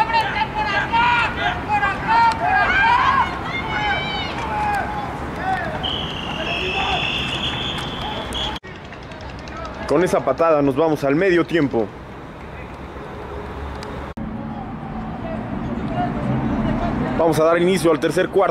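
Men shout and cheer outdoors.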